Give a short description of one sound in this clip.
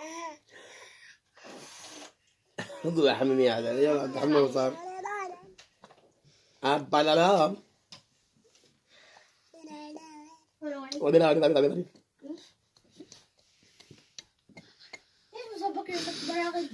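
A toddler babbles and vocalizes up close.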